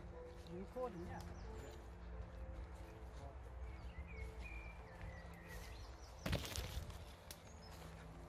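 Leaves and branches swish against clothing.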